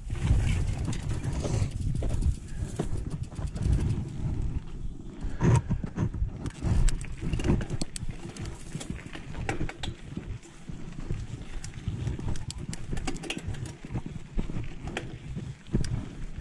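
Knobby mountain bike tyres crunch over a dirt trail.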